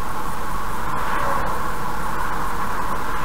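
A truck passes by in the other direction with a brief whoosh.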